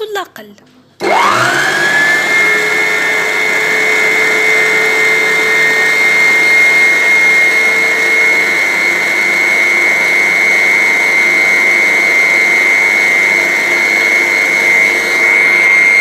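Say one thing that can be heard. A stand mixer motor whirs with a steady high whine.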